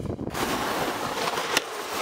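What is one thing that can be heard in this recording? A snowboard scrapes and hisses across the snow.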